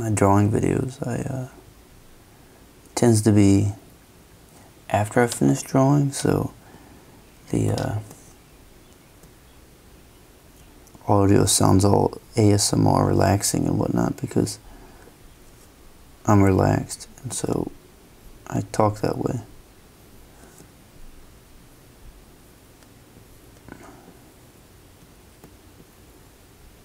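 A felt-tip pen scratches softly across paper.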